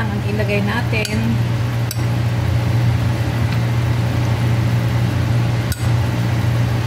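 A metal spoon clinks against a glass pot.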